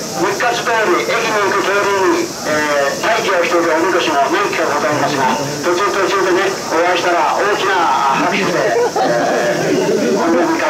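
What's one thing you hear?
A group of men chant loudly together in unison.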